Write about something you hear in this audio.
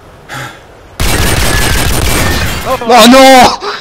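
Gunfire bursts loudly and rapidly.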